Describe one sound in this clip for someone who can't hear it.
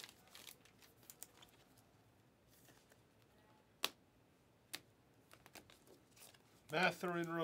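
Trading cards slide and snap against each other.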